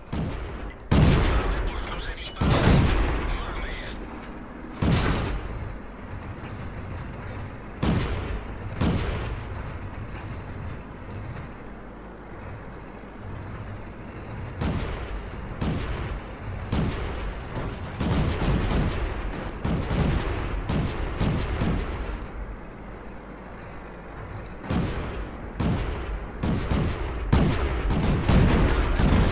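A tank cannon fires with loud, sharp booms.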